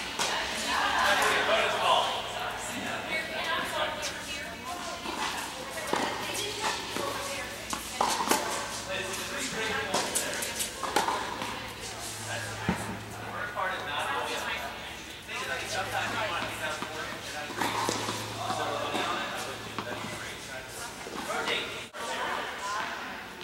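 Young women talk and call out across the courts in an echoing hall.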